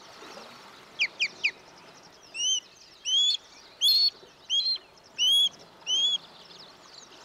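A bird of prey calls with loud, repeated shrill whistles.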